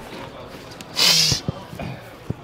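A referee's whistle blows shrilly.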